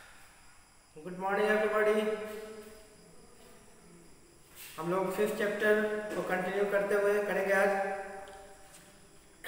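A man speaks calmly into a clip-on microphone, close by.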